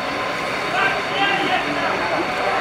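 A man shouts encouragement outdoors.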